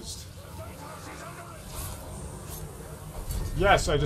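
Swords clash and clang in a close fight.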